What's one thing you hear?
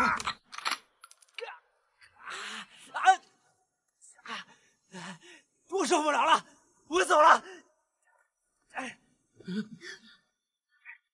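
A young man speaks in distress, groaning and sobbing.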